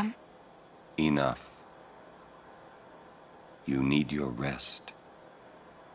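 A man speaks in a low, firm voice.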